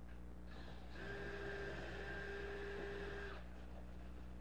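A cordless drill whirs as it drives into wood.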